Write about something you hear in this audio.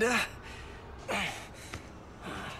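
A man answers weakly close by.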